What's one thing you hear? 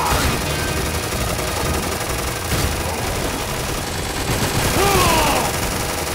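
Rapid gunfire and blasts from a video game ring out continuously.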